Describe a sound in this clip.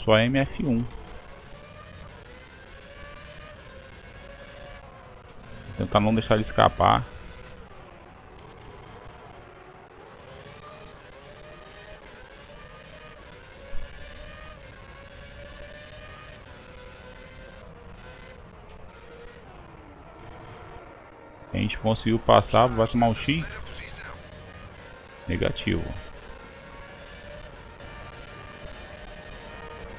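A racing car engine whines, rising and falling as it shifts gears.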